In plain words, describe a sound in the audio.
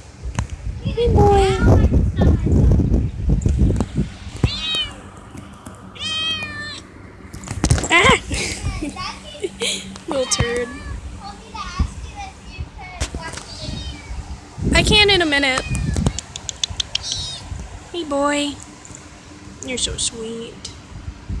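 A kitten meows repeatedly up close.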